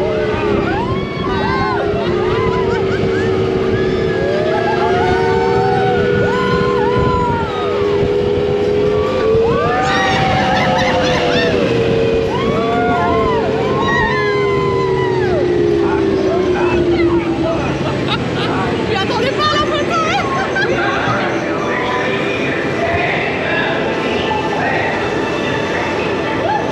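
Wind rushes past an open ride vehicle.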